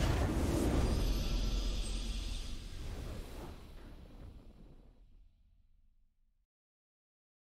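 A triumphant game fanfare plays loudly and slowly fades away.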